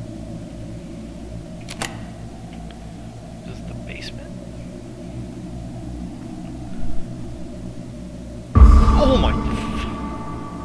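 Light footsteps patter slowly.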